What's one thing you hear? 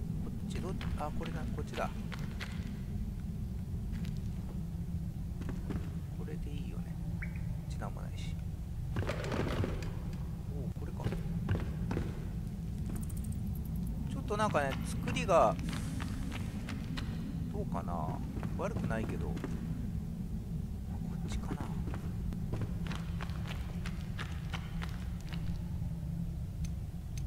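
Footsteps thud and scrape on wooden boards and rocky ground.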